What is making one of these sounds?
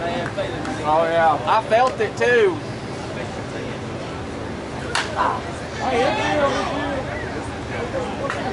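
Men shout and cheer outdoors nearby.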